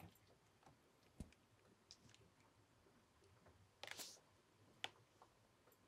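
A cat nudges a toy ball, which rattles and rolls.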